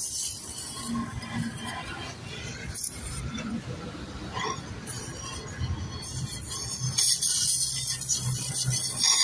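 A welding arc crackles and hisses up close.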